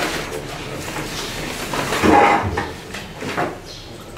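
Paper rustles as a man handles sheets.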